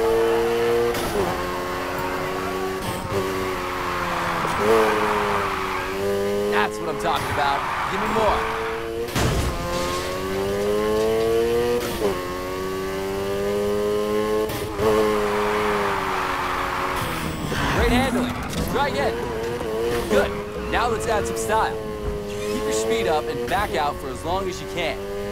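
A car engine revs hard and whines up and down through the gears.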